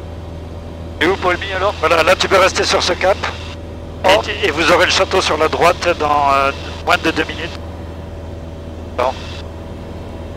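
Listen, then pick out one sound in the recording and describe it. A boy talks with animation over a headset intercom.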